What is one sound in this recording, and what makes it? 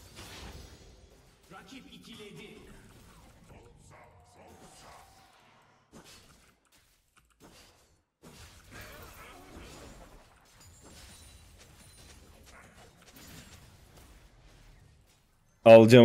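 Video game combat effects play faintly.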